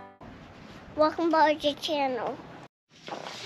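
A young child speaks briefly near the microphone.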